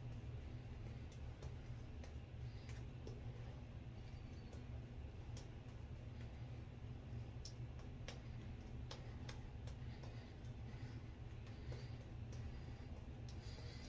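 A shaving brush swishes and scrubs against a lathered face.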